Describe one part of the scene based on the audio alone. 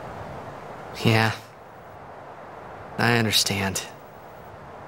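A young man answers hesitantly, close by.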